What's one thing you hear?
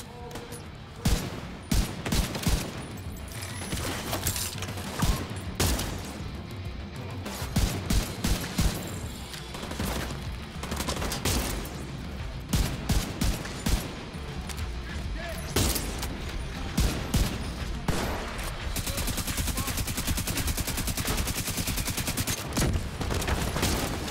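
Gunfire bursts out in rapid cracking volleys.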